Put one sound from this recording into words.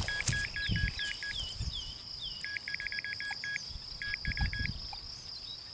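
A metal detector beeps in quick repeated bursts.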